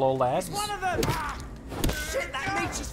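Blows thud and smack in a close fight.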